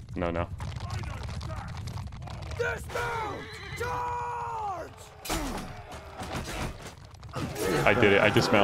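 Horses gallop in a rumbling mass.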